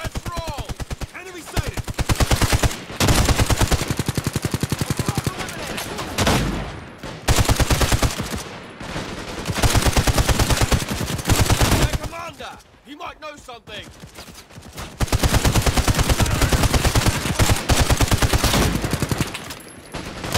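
Rapid automatic gunfire rattles in quick bursts.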